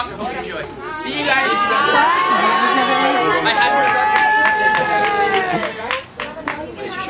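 Young women scream excitedly in a crowd.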